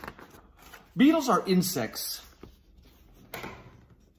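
Paper pages of a book rustle as they turn.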